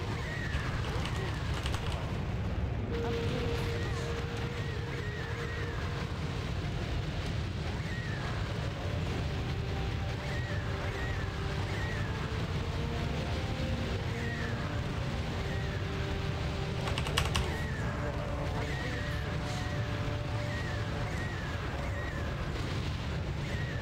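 Winged creatures screech again and again.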